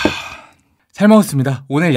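A young man speaks cheerfully, close to a microphone.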